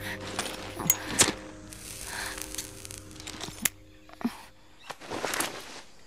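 A lighter clicks and flares.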